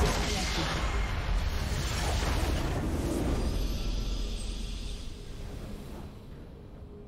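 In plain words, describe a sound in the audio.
A loud explosion booms and rumbles, then fades away.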